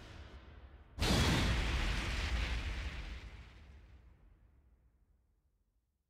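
A loud blast of a game sound effect bursts out and slowly fades away.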